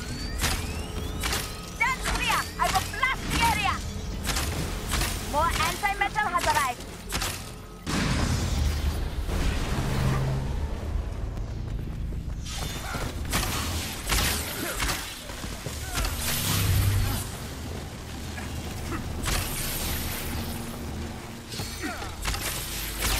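Rapid energy blasts crack and thud in a fight.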